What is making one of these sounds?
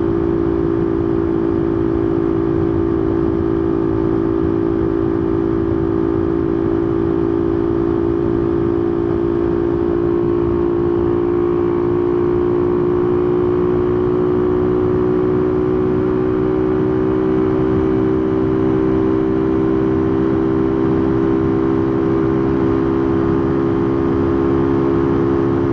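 A motorcycle engine hums steadily at speed, its pitch rising slightly.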